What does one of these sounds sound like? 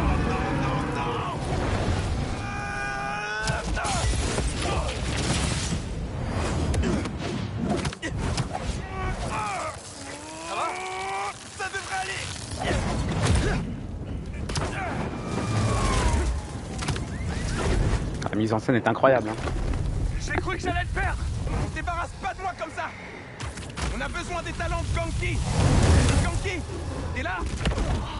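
A heavy, low rumble of crashing debris rolls on.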